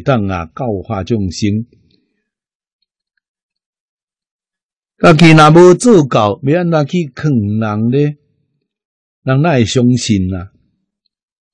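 An elderly man speaks calmly and warmly into a close microphone, with pauses between phrases.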